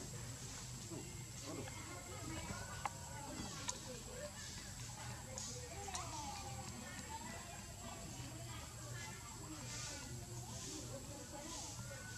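Leafy branches rustle as a monkey climbs in a tree.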